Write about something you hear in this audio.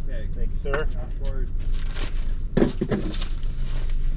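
A man speaks through an open car window, close by.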